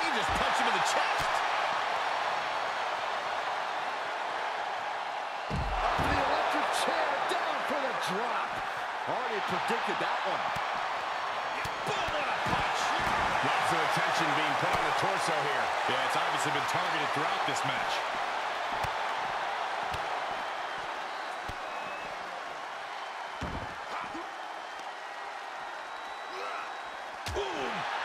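A large crowd cheers and roars.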